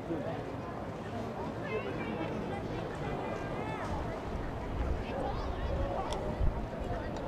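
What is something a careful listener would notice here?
A sparse crowd murmurs and calls out in an open stadium.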